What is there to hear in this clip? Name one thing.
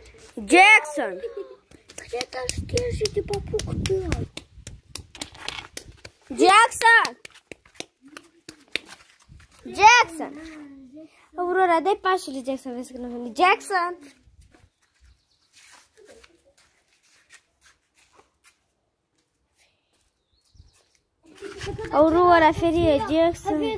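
A young girl talks and laughs excitedly close by.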